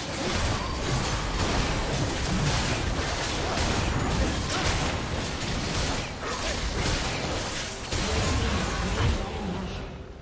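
Spell effects and combat sounds clash and burst continuously.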